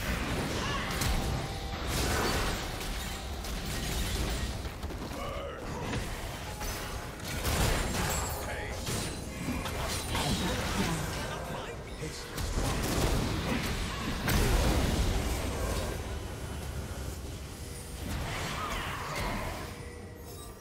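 Magic spells and weapon blows from a fantasy video game crackle and boom in quick bursts.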